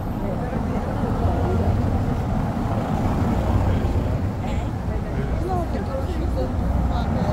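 A group of adults chat as they walk outdoors.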